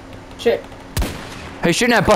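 A single rifle shot cracks sharply.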